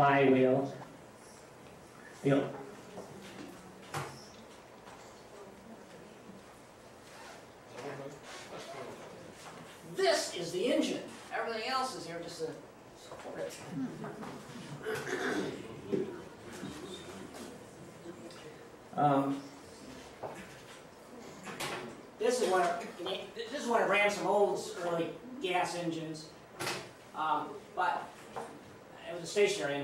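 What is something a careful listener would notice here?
A man talks calmly, as if giving a lecture.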